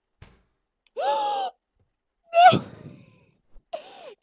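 A young woman laughs and screams loudly.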